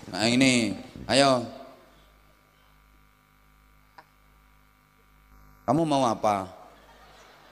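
A man speaks loudly and with animation into a microphone over a loudspeaker.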